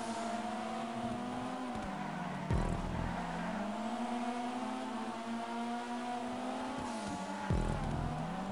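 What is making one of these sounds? A racing car engine roars and revs up and down between gear shifts.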